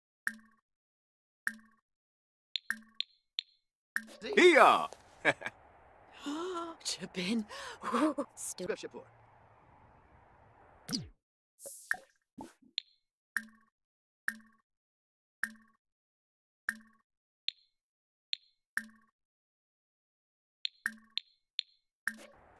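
Short soft clicks sound as game menus open and close.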